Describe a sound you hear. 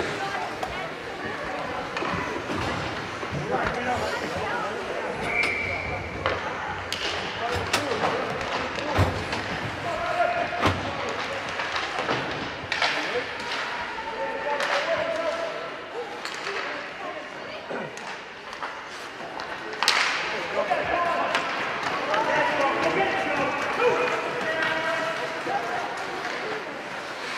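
Skates scrape and swish on ice.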